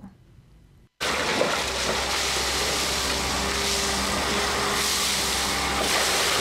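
An excavator bucket scrapes and knocks against rubble.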